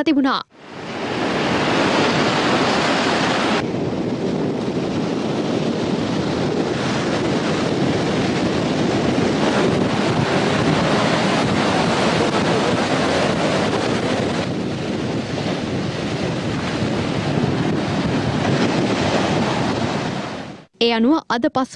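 Waves crash and surge onto a beach.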